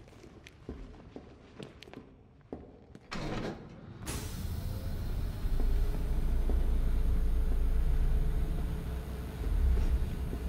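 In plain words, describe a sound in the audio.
A large metal wheel clanks as it is turned.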